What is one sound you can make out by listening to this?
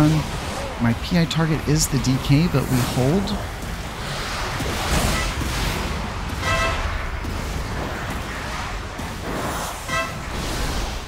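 Magic spells whoosh and crackle in a fierce battle.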